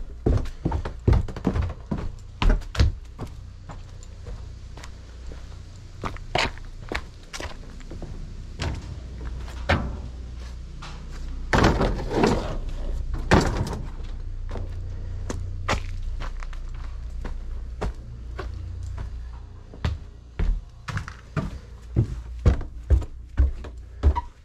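Footsteps crunch over debris and creak up wooden stairs.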